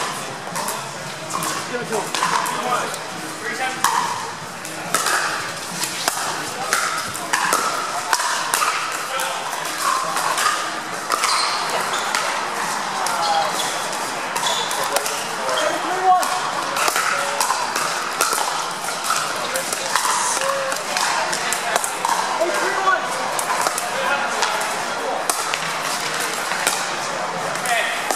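A crowd of spectators chatters steadily in a large echoing hall.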